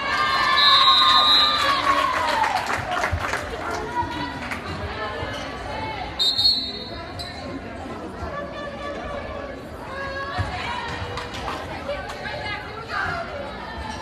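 Players call out to each other on the court.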